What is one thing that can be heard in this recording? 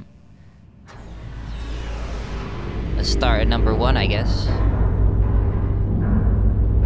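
A heavy platform rumbles low as it moves.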